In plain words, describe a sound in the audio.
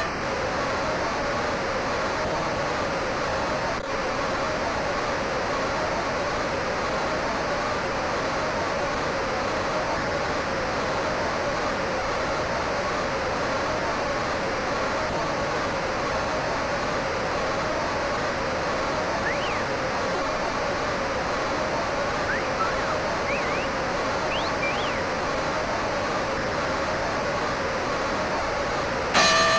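A large crowd cheers steadily in a big arena.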